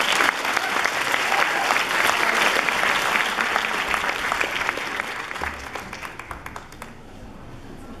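An audience claps loudly in a large hall, then the clapping fades.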